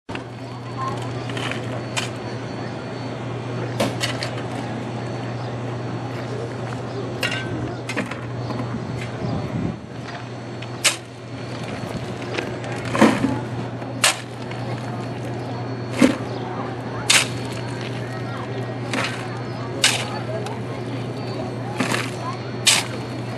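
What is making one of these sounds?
A shovel scrapes and crunches into a pile of coal.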